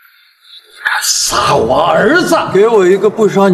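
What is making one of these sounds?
An elderly man shouts angrily.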